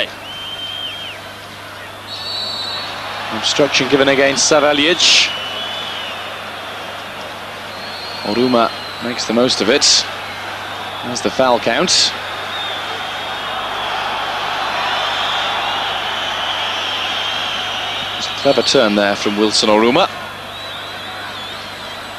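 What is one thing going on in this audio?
A large stadium crowd murmurs and chants steadily in the open air.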